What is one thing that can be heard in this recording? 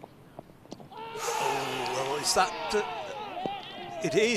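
Several men shout an appeal loudly outdoors.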